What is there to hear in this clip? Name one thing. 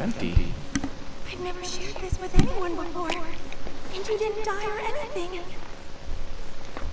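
A young woman speaks excitedly, close by.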